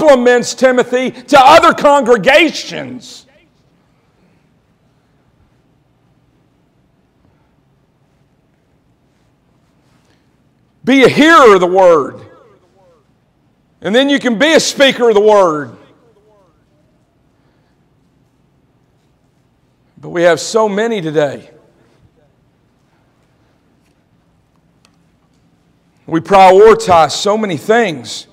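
A man preaches with animation through a microphone in a large echoing hall, pausing between bursts of speech.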